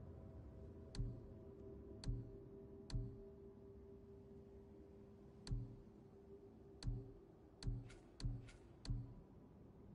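Soft menu clicks tick now and then as selections change.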